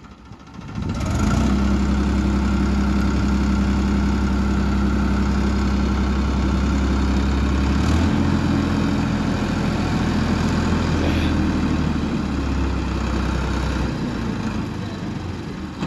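A tractor engine idles with a steady low rumble nearby.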